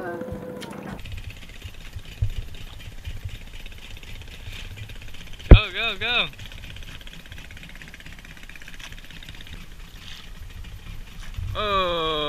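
Water laps gently against a small wooden boat.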